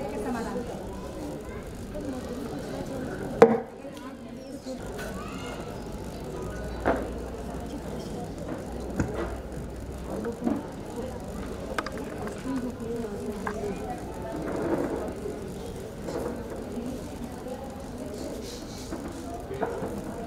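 Several women talk quietly together in a large, echoing hall.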